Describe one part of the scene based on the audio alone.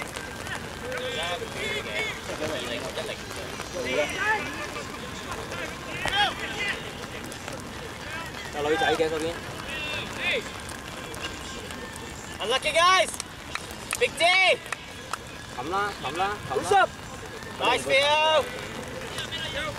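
Young women shout and call out loudly across an open field.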